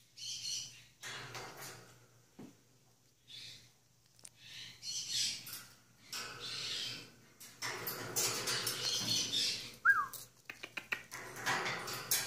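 A macaw flaps its wings noisily.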